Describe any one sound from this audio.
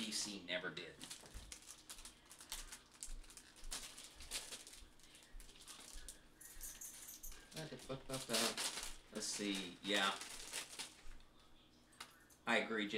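Wrapping paper crinkles and rustles in a woman's hands.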